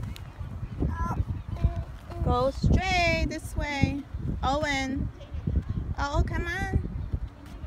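A toddler babbles in a high voice nearby.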